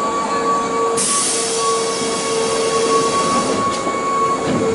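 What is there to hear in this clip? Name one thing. Train doors close with a sharp hiss of air.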